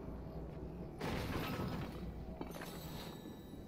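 A chest bursts open with a bright chime.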